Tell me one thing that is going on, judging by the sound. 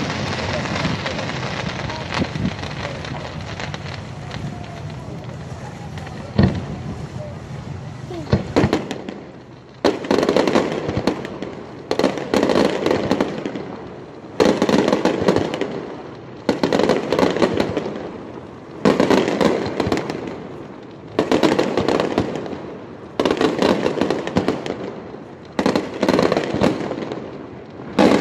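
Fireworks bang in the distance.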